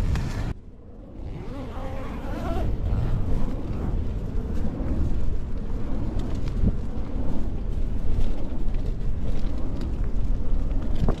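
Wind blows outdoors against a tent.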